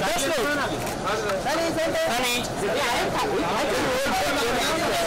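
Several men talk and call out loudly close by in a crowd.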